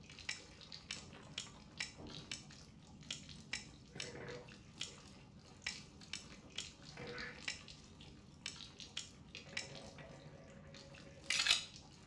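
Metal lock dials click one by one as they are turned.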